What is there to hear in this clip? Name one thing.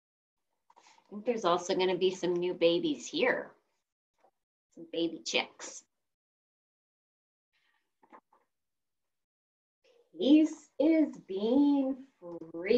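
A woman reads aloud in an animated voice, close to a microphone, heard over an online call.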